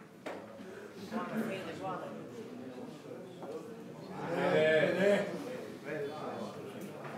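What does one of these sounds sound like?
Men murmur and talk quietly nearby.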